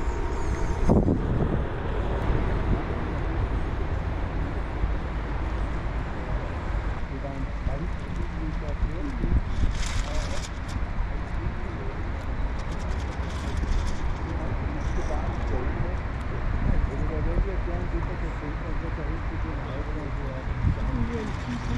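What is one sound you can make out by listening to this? Small waves lap against the bank.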